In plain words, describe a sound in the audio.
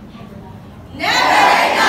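A group of young people speak together in chorus, loudly.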